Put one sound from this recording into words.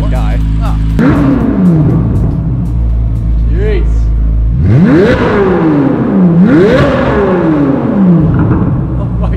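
A sports car engine revs sharply several times, echoing in a large concrete space.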